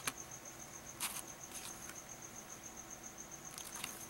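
Hands press and pat a sticker down onto cardboard.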